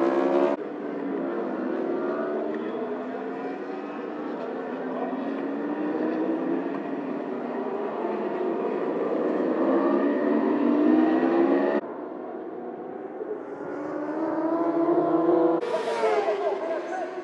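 Racing motorcycle engines roar and whine as the bikes speed past and shift gears.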